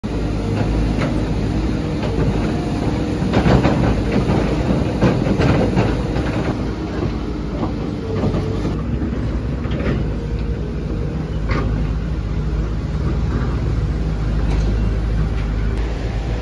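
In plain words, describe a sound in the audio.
Muddy floodwater rushes steadily.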